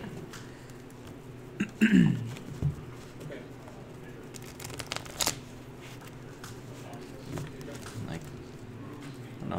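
Playing cards in sleeves shuffle, rustling and clicking softly.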